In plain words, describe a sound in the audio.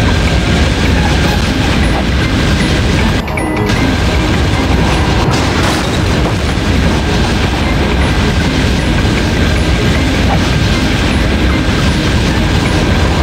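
A small vehicle's engine roars steadily.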